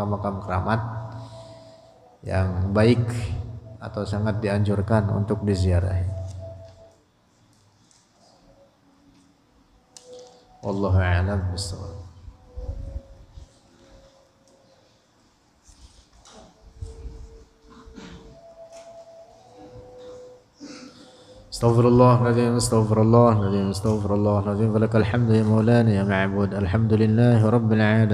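A young man chants melodiously into a close microphone.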